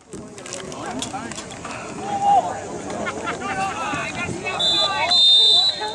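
Teenage boys shout and call out outdoors.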